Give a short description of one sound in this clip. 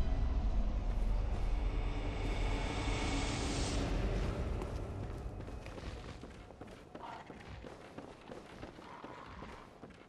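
Footsteps tread on ground and wooden boards.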